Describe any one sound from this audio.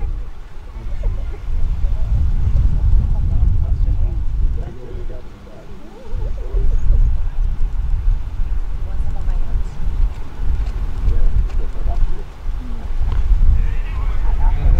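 Wind buffets the microphone outdoors in low gusts.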